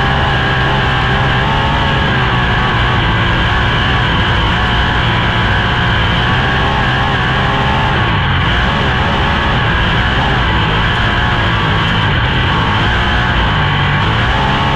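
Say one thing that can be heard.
A racing car engine roars loudly and steadily at high speed.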